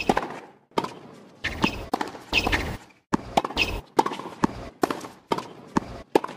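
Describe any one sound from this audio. Tennis rackets strike a ball back and forth with sharp pops.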